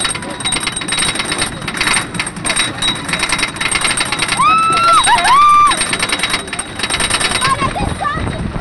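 A roller coaster clatters and rattles rapidly along its track.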